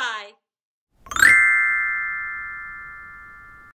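A xylophone note chimes and rings out slowly.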